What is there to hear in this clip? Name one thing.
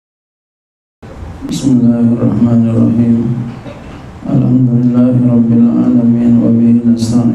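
A middle-aged man speaks steadily into a microphone.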